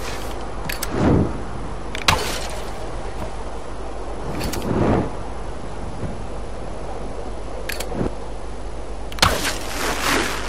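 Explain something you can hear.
A bowstring twangs as an arrow is shot, several times.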